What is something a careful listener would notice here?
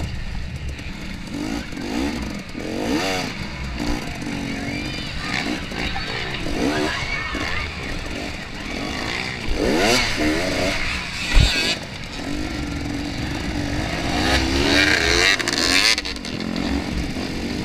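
A motorcycle engine revs hard up and down, close by.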